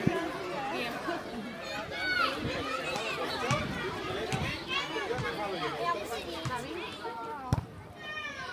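Young girls talk excitedly close by.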